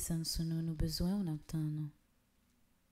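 A young girl sings briefly into a microphone, then falls silent.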